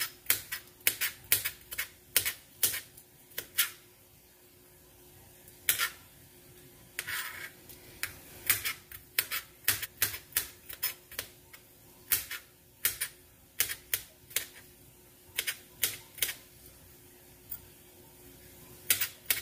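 A knife chops on a cutting board with sharp, uneven taps.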